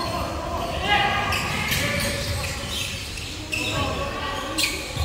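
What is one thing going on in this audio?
Young men call out to each other across a large echoing hall.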